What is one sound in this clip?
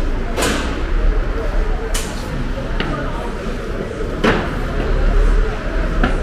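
Shoppers and vendors murmur in the background of a large echoing hall.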